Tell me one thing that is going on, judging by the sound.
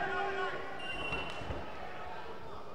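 Wrestlers' bodies thud onto a mat.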